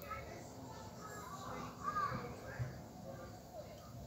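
Liquid pours into a glass jar.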